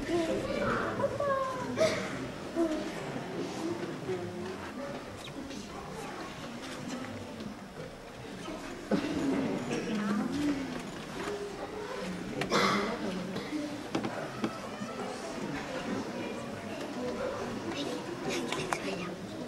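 A woman speaks with animation in a hall with some echo.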